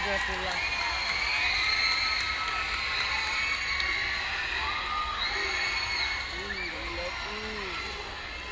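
A large crowd chatters and cheers in a big open arena.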